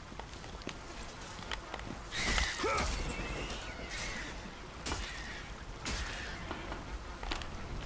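Blades strike with sharp hits.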